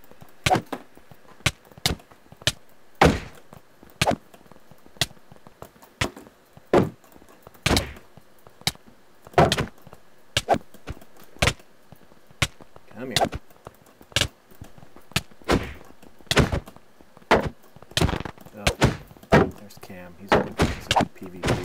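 Sharp video game hit sounds land over and over in a sword fight.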